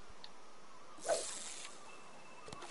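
A fishing lure splashes into calm water.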